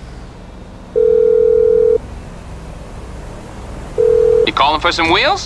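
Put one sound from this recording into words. A phone rings in short, steady tones through an earpiece.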